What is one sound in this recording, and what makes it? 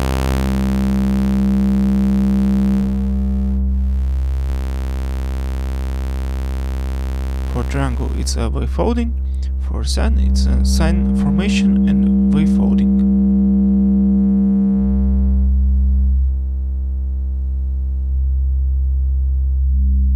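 A steady electronic synthesizer drone hums and shifts in tone.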